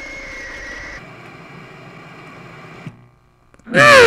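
Static hisses steadily.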